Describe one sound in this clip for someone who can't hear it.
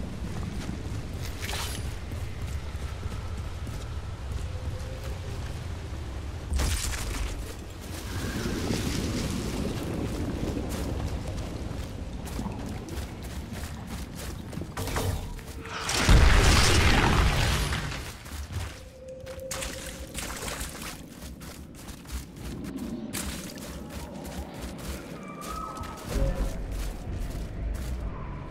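Footsteps crunch quickly over gravel and rocky ground.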